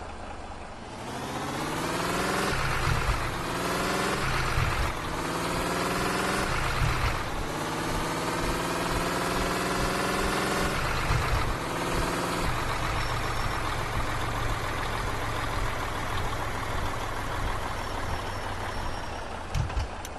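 A bus engine roars and revs up repeatedly as the bus speeds up.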